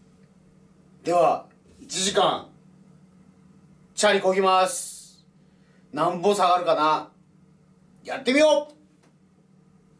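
A man speaks animatedly in short bursts close by.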